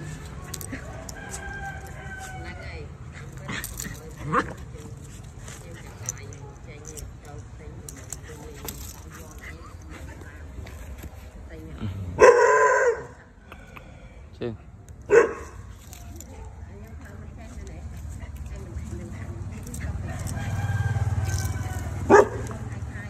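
A dog whines in short high cries.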